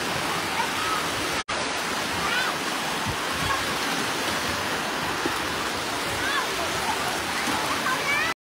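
Water splashes and churns steadily around waders.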